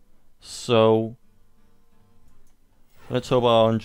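A game chimes and whooshes as a card is played.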